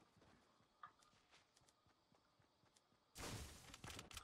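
Wooden building pieces clatter into place.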